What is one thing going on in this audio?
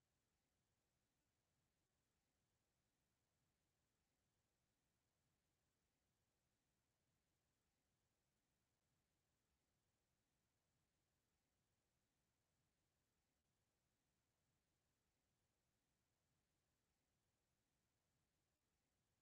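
A clock ticks steadily.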